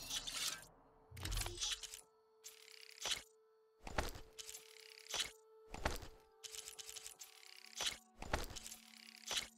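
Menu clicks and soft chimes sound at intervals.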